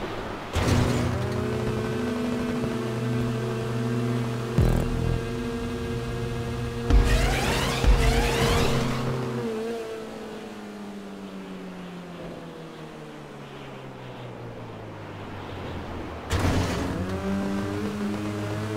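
A small car engine revs steadily and then winds down.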